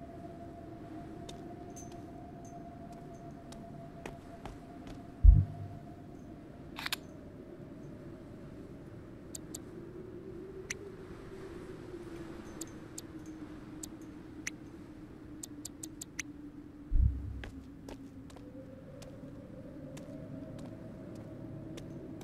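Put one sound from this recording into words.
Footsteps scuff slowly across a concrete floor.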